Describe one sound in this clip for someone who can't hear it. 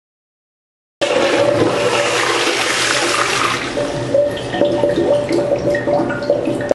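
A toilet flushes with rushing, gurgling water.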